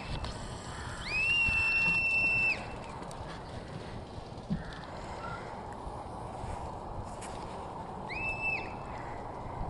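Wind blows and rumbles across an open field.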